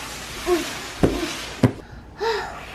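A cardboard box thumps on a wooden floor.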